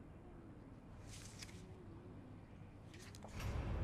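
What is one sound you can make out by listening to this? A stiff paper rustles as it is handled and turned over.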